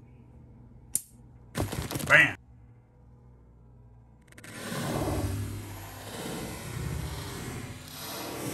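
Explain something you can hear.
A snake strikes with a sudden thud in dry wood chips.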